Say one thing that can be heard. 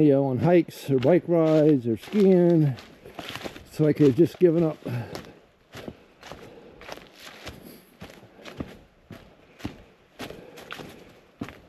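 Footsteps crunch through dry fallen leaves.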